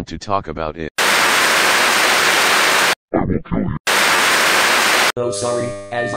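Loud television static hisses.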